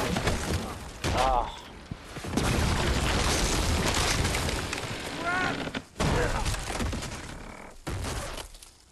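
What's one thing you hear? A building crumbles and crashes down.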